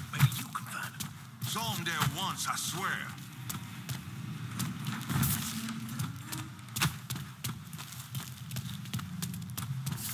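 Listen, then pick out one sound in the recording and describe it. Footsteps tap on a hard concrete floor.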